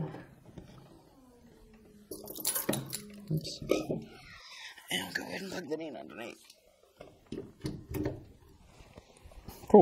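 Objects clatter and knock as they are handled.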